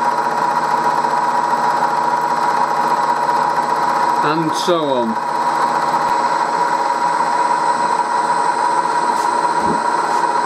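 A milling machine hums steadily as its cutter grinds into metal.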